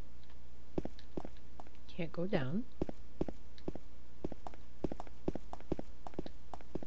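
Footsteps thud slowly and steadily on a hard floor.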